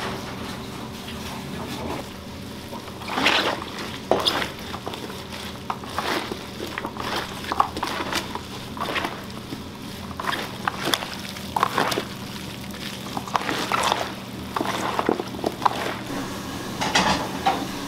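Gloved hands squelch and slap as they mix wet vegetables.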